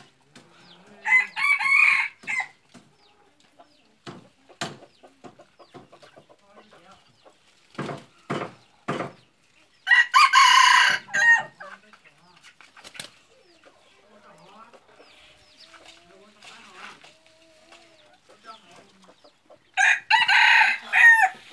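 A rooster crows loudly close by, several times.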